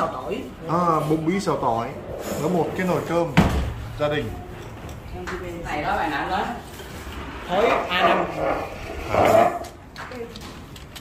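Adult women chat and laugh close by.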